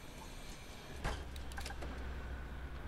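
A bus door closes with a thud.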